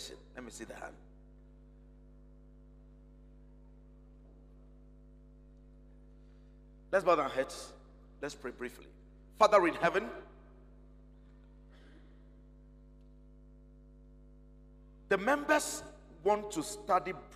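A man speaks slowly with pauses through a microphone, echoing slightly in a large room.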